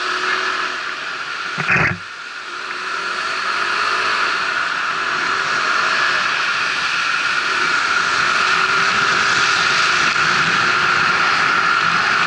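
Wind rushes steadily past a moving rider, growing stronger as the speed rises.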